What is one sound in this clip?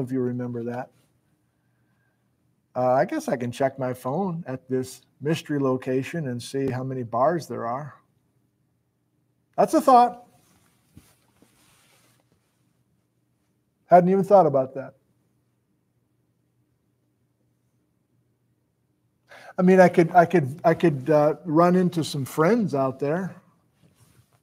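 A middle-aged man talks close to a microphone with animation, pausing between phrases.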